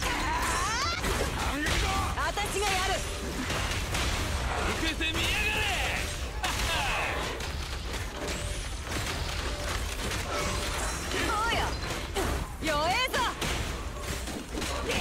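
Blades slash and clang with sharp metallic hits.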